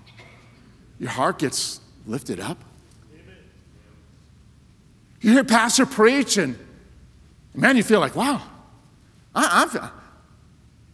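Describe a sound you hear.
A middle-aged man speaks with animation through a microphone, in short bursts with pauses.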